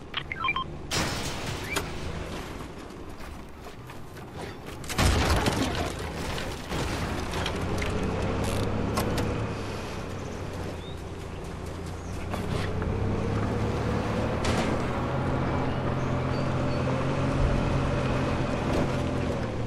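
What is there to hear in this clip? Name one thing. A video game off-road buggy engine hums as it drives.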